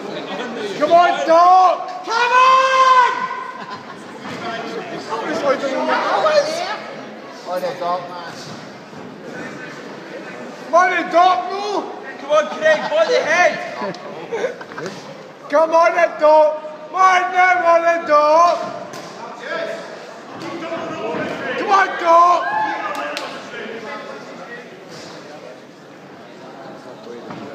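Men in a crowd shout loudly nearby.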